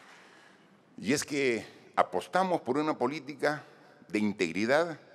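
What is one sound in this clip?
A man speaks calmly through a microphone over loudspeakers in a large hall.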